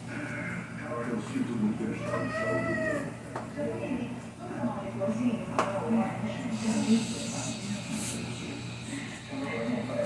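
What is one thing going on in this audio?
A mop swishes across a tiled floor.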